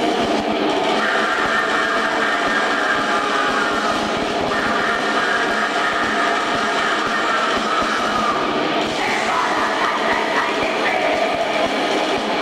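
A man sings harshly into a microphone over the band.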